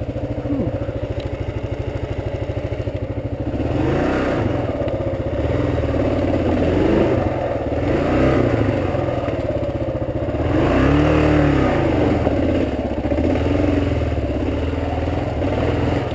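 A motorcycle engine chugs and revs unevenly up close.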